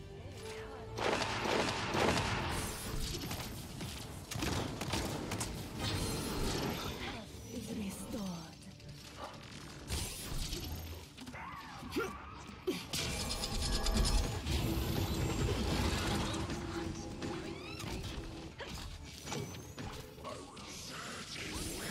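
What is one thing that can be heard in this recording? Energy guns fire in rapid bursts with electric zaps.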